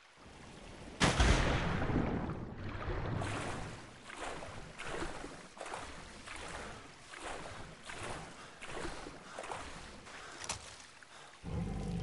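Water swishes in rhythmic swimming strokes.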